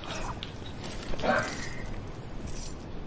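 A container is searched open with a rattling chime.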